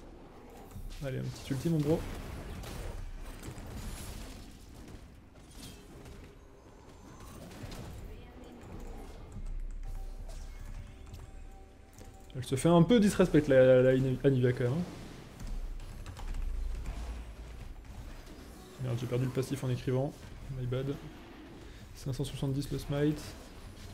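A man talks with animation close to a microphone, in short bursts.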